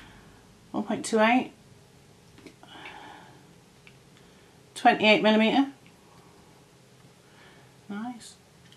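A woman speaks close by in short, calm bursts.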